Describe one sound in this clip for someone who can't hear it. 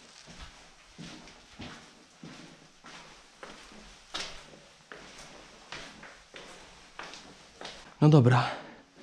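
Footsteps thud steadily on stairs.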